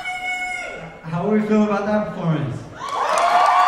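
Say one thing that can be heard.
A young man sings in a low voice into a microphone.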